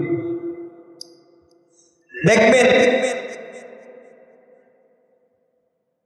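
A man chants in long, drawn-out phrases through a microphone, with a strong echo.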